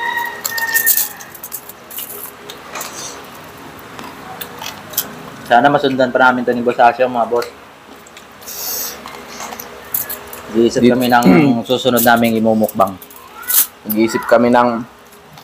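Foil crinkles as hands pick food from a table.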